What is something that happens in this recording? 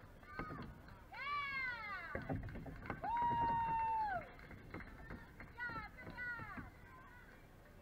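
Young girls cheer and shout loudly nearby.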